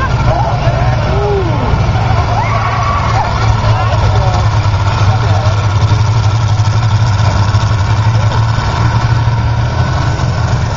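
A tractor engine roars loudly and steadily.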